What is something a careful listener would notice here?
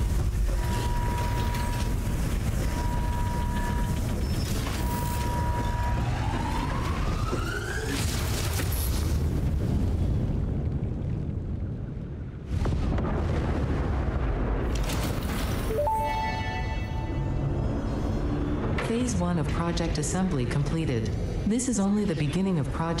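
A large machine rumbles and hums steadily.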